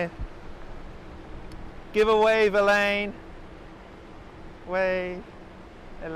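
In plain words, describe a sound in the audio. A shallow stream trickles over stones outdoors.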